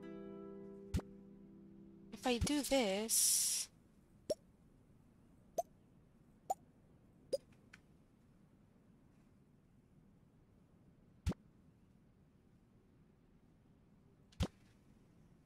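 Short interface clicks tick now and then as items are moved and placed.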